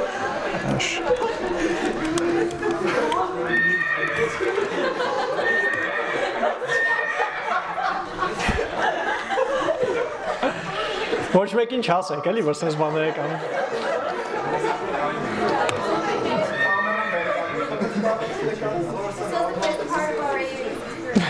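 A young man speaks steadily into a microphone in a large room.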